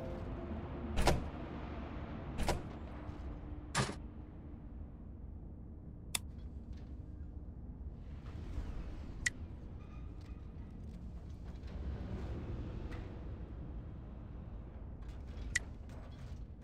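Game menu buttons click now and then.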